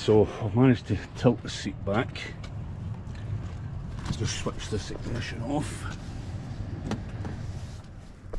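An electric seat motor whirs.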